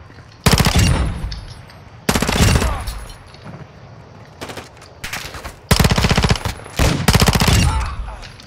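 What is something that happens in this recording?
Rapid gunfire bursts out in short, loud volleys.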